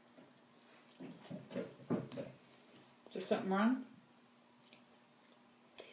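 A girl chews food close by.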